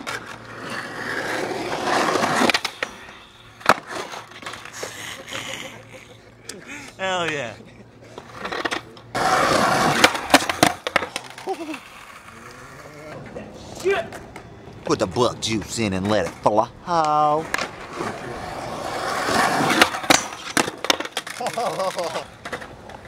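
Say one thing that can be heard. Skateboard wheels roll and rumble on concrete.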